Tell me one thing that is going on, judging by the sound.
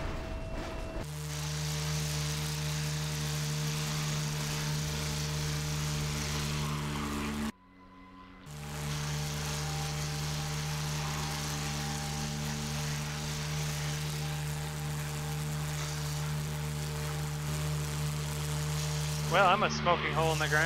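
A propeller plane's engine drones loudly and steadily.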